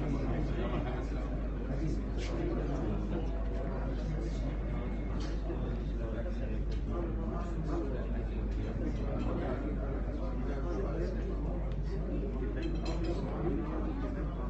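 A crowd of men murmurs and chatters.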